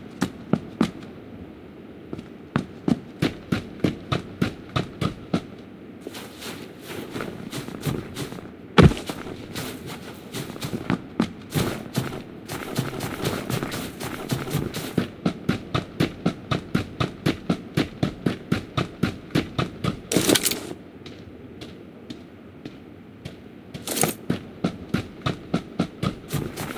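Quick footsteps crunch over snow and grass.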